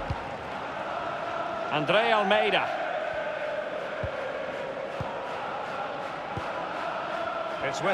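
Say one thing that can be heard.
A large crowd murmurs and cheers steadily in a big open stadium.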